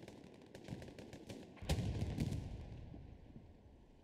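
Muskets crackle and a cannon booms in a distant battle.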